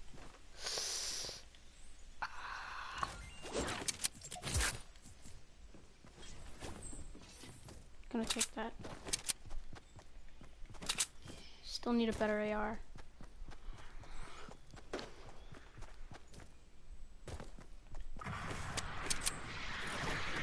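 Footsteps thud quickly across wooden planks and grass.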